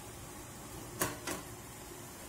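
A plastic bowl clinks down onto a metal steamer tray.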